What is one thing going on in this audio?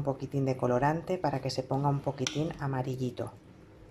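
A wooden spoon stirs soup in a bowl.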